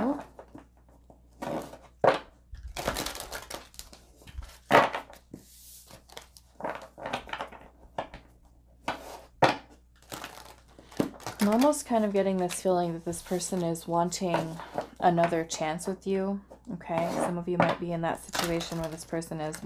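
Playing cards shuffle and riffle with quick papery flicks.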